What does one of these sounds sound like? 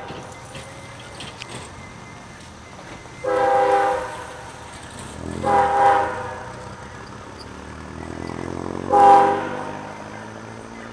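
A distant train rumbles along the tracks.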